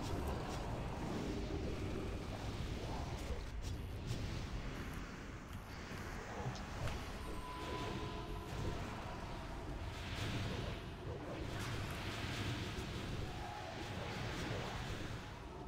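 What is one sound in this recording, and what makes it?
Magic spells crackle and whoosh during a busy fantasy battle.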